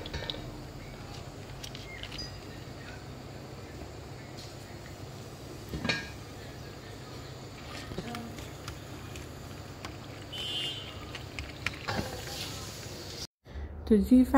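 A metal fork scrapes and clinks against a plastic container.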